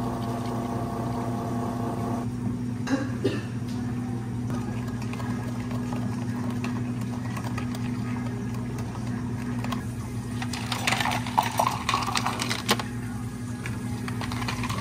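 An espresso machine hums steadily.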